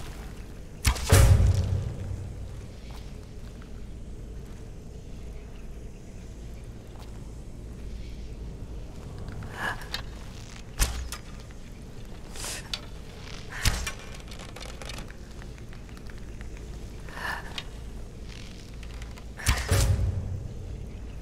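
Arrows strike a target with a heavy thud.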